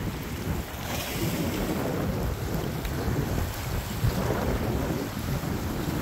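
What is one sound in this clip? Waves splash against rocks.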